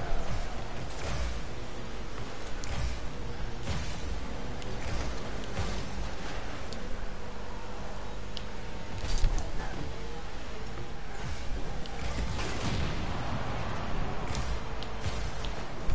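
A rocket boost whooshes in bursts.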